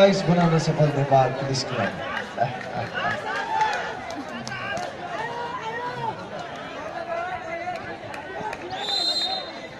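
A large crowd outdoors chatters and cheers.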